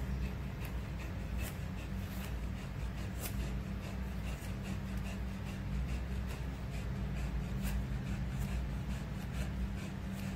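Scissors snip through dog fur.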